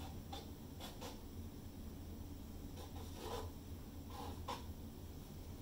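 Gloved hands smear wet paint with soft squelching sounds.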